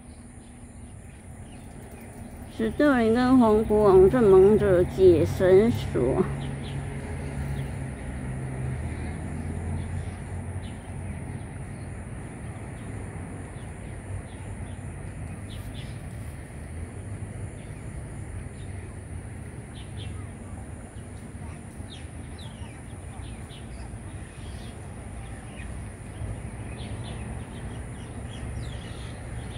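Small parrots chirp and squeak softly nearby.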